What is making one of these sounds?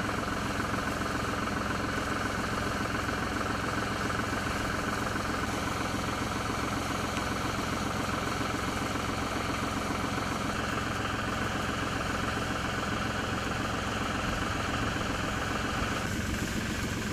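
Water sprays in a steady hiss from a hose nozzle outdoors.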